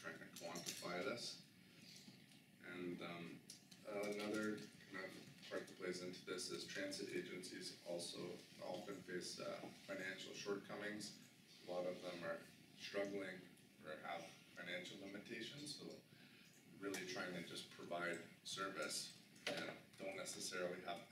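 A man speaks calmly to an audience.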